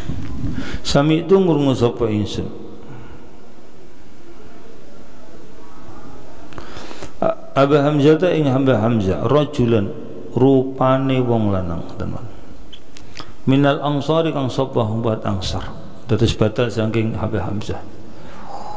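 An elderly man recites slowly into a microphone, in bursts with long pauses.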